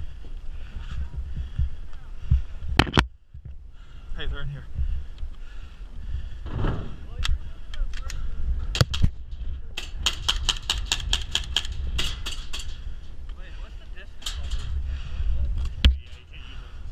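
A gun fires sharp shots in quick bursts.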